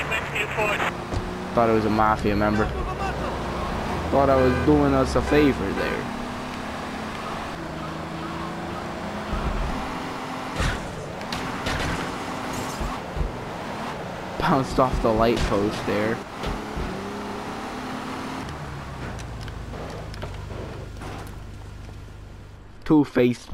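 A car engine hums steadily as a car drives.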